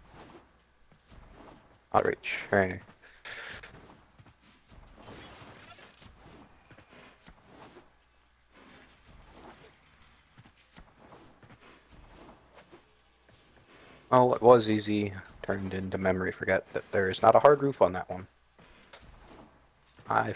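A blade whooshes through the air in quick swings.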